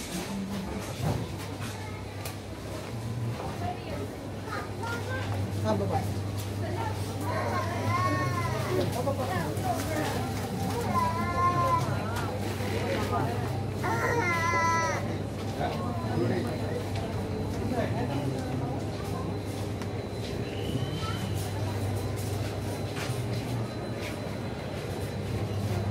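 Men and women chatter indistinctly nearby.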